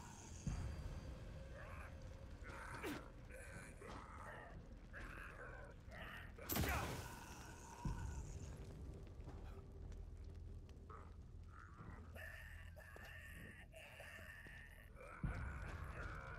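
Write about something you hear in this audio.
Heavy thuds and blows land.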